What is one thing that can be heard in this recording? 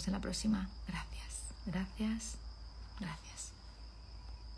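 A woman speaks warmly and cheerfully close to a microphone.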